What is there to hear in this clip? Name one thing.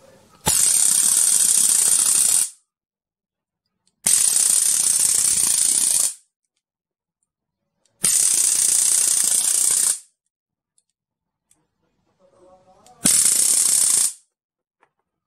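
An electric arc lighter crackles and hisses in loud, sharp bursts of a couple of seconds each.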